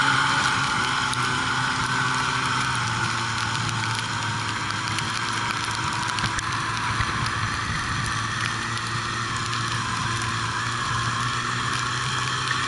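A snowmobile engine drones steadily up close.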